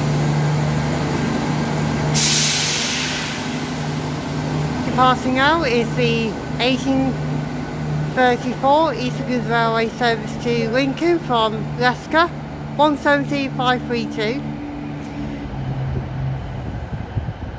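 A diesel train engine hums steadily and then fades as the train pulls away.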